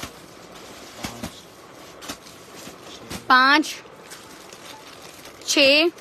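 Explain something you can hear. Plastic wrapping crinkles as packages are handled.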